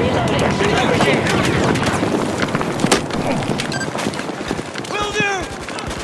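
A scoped rifle fires sharp shots.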